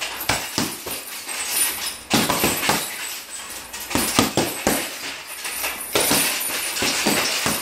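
Fists thump rapidly against a heavy punching bag.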